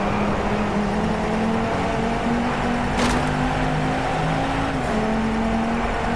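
A sports car engine accelerates hard through the gears.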